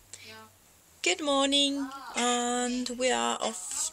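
A young woman sings loudly close by.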